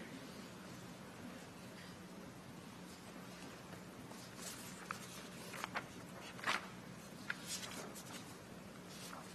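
Paper rustles as a man shuffles sheets.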